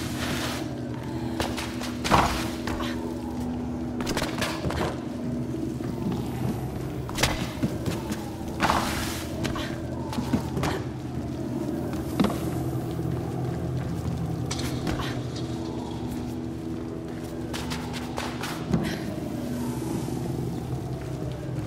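Footsteps thud quickly against a wall.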